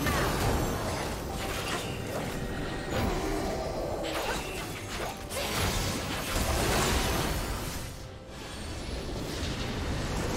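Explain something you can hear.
Game spells and attacks crackle and boom in a busy battle.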